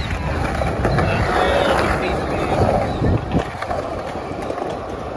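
Skateboard wheels roll and rumble over rough concrete outdoors.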